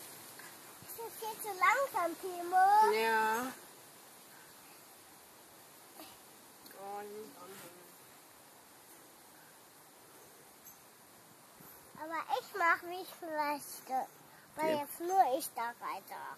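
A young child squeals and chatters close by.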